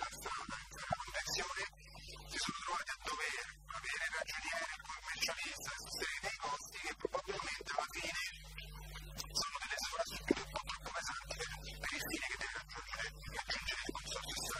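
An elderly man speaks with animation through a microphone in a large room.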